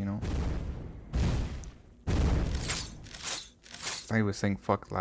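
Video game spell effects burst and whoosh in quick succession.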